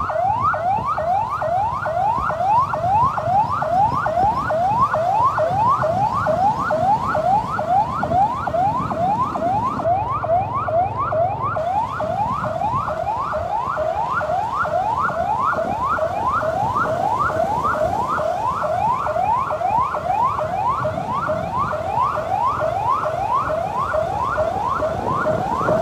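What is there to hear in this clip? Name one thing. A police pickup's siren yelps in fast rising wails.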